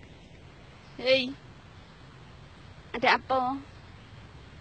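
A young woman nearby gives short, loud, wavering calls.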